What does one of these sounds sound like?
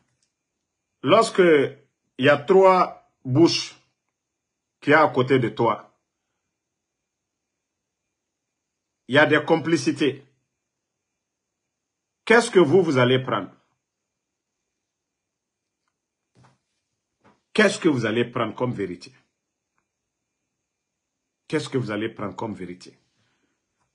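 A man speaks to a microphone up close, in short bursts with pauses.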